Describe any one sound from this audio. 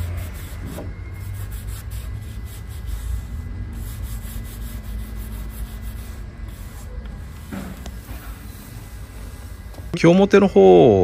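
A cloth rubs softly across a wooden board.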